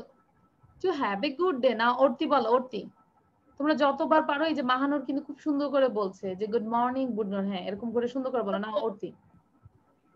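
A young girl sings through an online call.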